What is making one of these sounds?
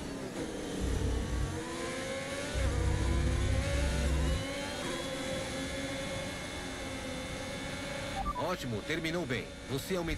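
A racing car engine roars steadily at high speed.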